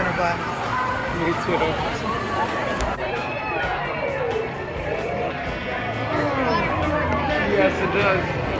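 A crowd of children and adults chatters and shouts nearby outdoors.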